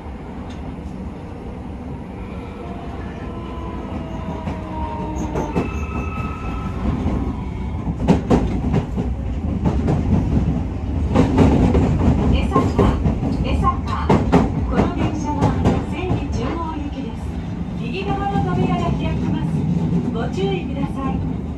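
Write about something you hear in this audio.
Cars rush past on a road beside the train.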